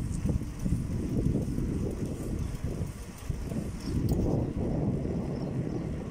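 Tyres roll steadily over rough asphalt.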